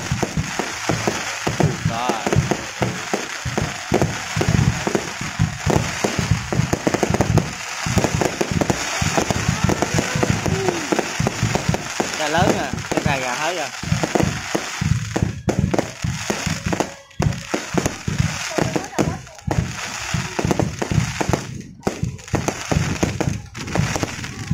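Fireworks crackle and pop rapidly overhead.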